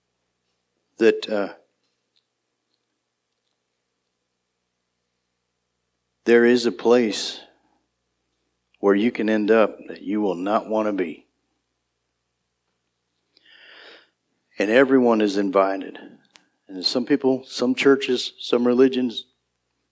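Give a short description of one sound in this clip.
A middle-aged man speaks slowly and deliberately through a microphone, with long pauses.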